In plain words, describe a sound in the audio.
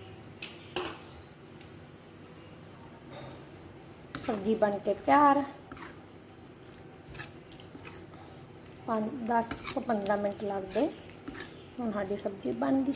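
A metal spoon scrapes and knocks against a pan while stirring.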